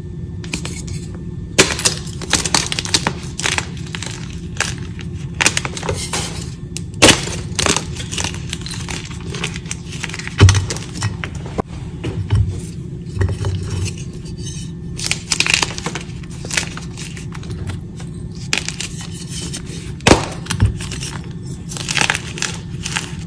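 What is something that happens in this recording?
Crumbled chalk pieces patter and rustle onto a heap.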